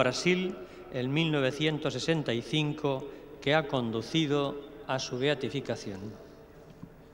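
An elderly man chants in a wavering voice through a loudspeaker.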